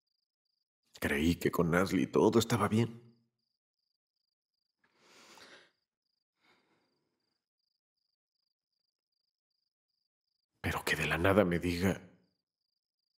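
A man speaks quietly and calmly nearby.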